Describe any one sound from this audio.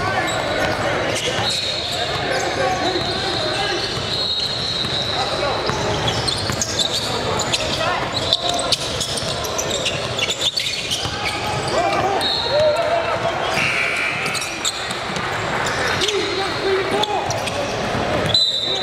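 Sneakers squeak sharply in a large echoing hall.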